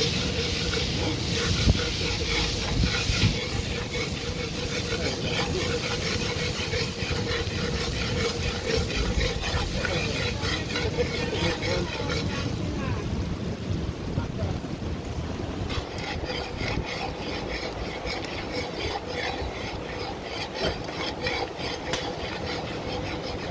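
Oil sizzles and crackles in a hot pot.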